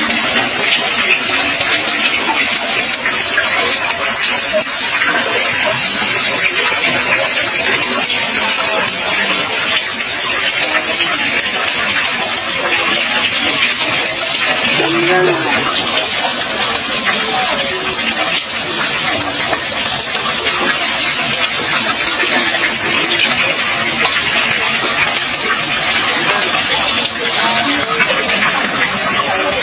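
Water streams down in thin trickles and splashes into a well.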